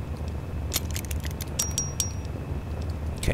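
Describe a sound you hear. Soft electronic clicks tick as a menu is scrolled.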